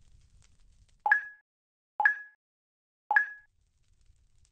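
Short game chimes sound three times in a countdown.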